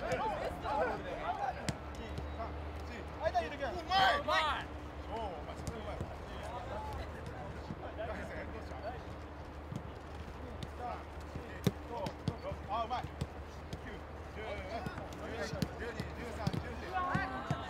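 Men call out and chat outdoors at a distance.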